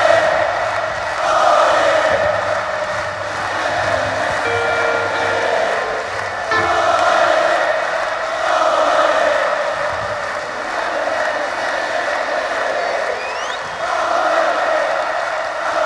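A huge crowd cheers and sings along in rising and falling waves in a vast echoing arena.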